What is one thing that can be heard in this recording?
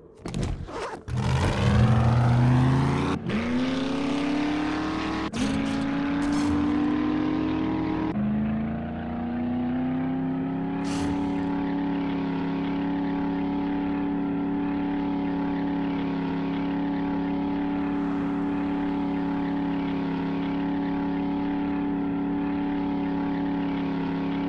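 A truck engine revs up, shifts gears and then hums steadily.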